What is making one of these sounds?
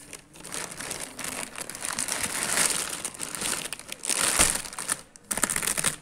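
A plastic bag rustles and crinkles close by.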